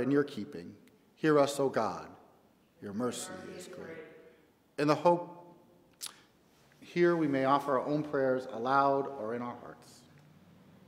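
A middle-aged man speaks calmly and expressively close to a microphone.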